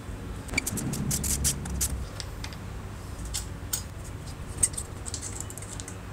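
A screwdriver scrapes against metal.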